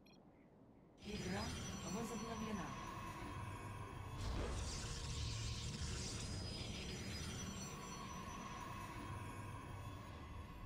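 Laser weapons zap and crackle rapidly in a loud battle.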